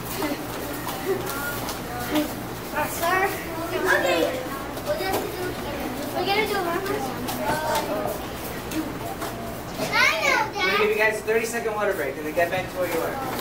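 Young children talk and call out excitedly.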